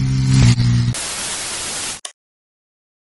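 Television static hisses loudly.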